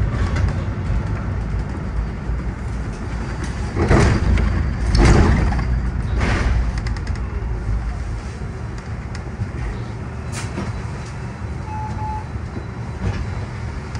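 A bus rattles and clatters as it rolls over the road.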